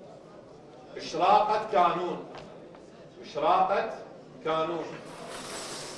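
A young man speaks into a microphone, announcing in short bursts.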